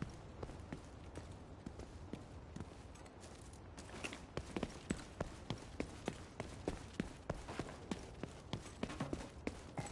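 Footsteps run quickly over a hard street scattered with debris.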